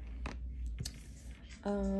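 A playing card slides softly across a table.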